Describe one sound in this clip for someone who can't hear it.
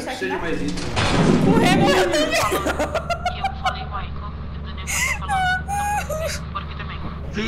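A young man laughs loudly into a headset microphone.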